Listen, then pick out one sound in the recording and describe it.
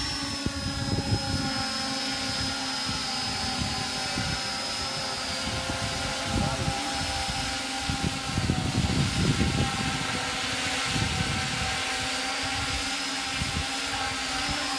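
A drone's propellers whir and buzz steadily overhead.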